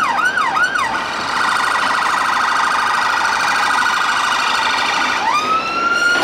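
An ambulance siren warbles rapidly and steadily.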